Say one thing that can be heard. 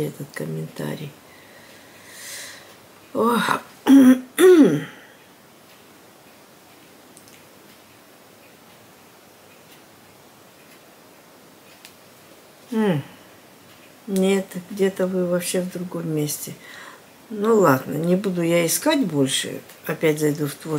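An elderly woman speaks calmly and quietly, close by.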